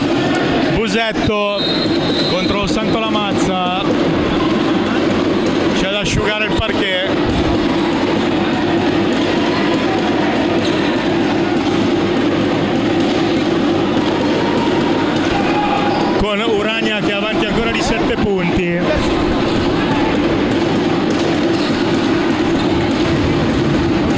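A basketball thumps as it is dribbled.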